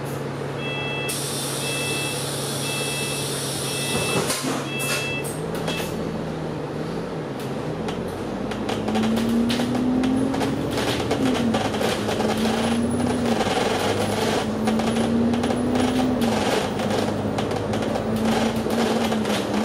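A bus engine hums and whines, rising and falling in pitch as it pulls away and speeds up.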